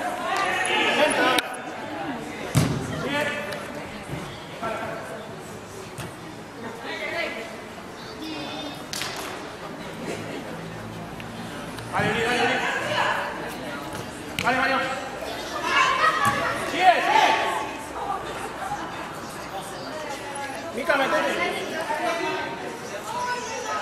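Young women shout and call out in a large echoing hall.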